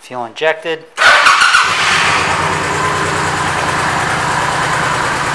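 A motorcycle engine starts with a roar and then idles steadily and loudly.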